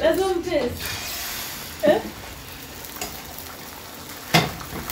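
Beaten eggs pour into a hot pan and sizzle.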